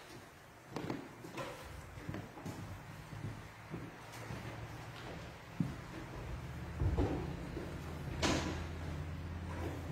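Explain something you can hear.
Footsteps tap across a floor in a large echoing hall.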